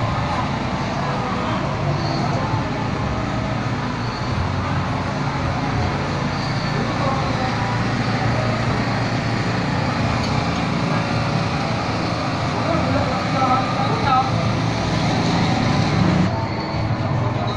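Rain falls on a wet street.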